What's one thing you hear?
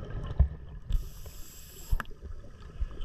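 A scuba diver exhales through a regulator underwater, sending out a rush of bubbles.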